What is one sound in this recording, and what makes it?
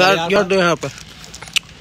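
A young man speaks briefly and close by, with animation.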